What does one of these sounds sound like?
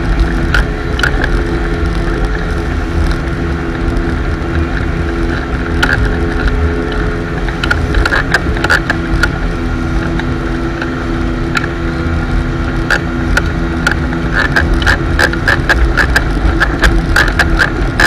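Water churns and splashes in the boat's wake.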